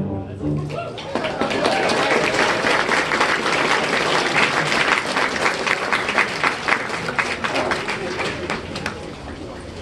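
An audience applauds outdoors.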